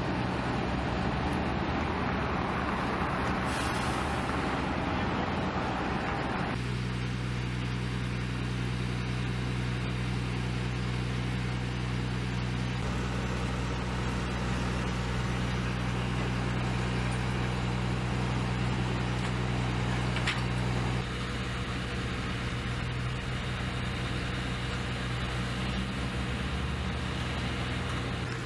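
A fire engine's motor rumbles steadily close by.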